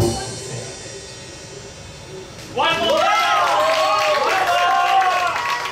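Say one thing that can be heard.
A live band plays music.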